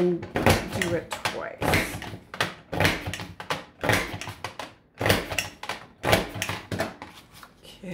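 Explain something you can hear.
A paper punch clunks repeatedly as it cuts a strip of card.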